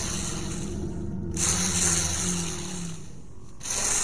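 A punch thuds against a man's body.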